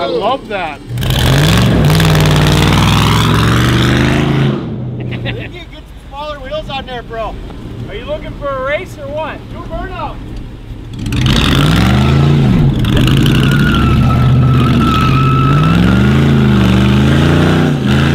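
A car engine revs loudly and roars as the car drives off.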